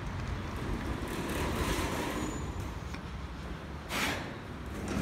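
Automatic glass doors slide open.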